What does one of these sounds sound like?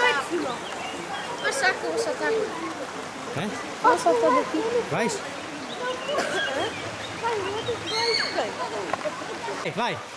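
A child splashes while swimming in water.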